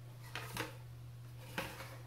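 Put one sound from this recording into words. A paintbrush dabs in a paint pan.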